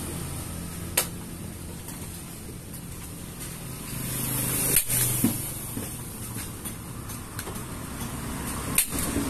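Hard plastic parts click and knock against each other.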